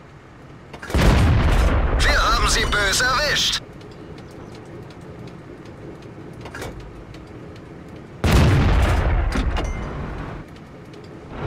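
A tank cannon fires with a loud boom that rolls away.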